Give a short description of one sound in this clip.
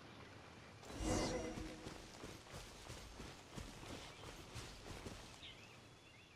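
Quick footsteps rustle through tall grass.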